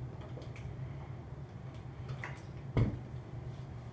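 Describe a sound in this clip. A plastic bottle clicks and rattles close by.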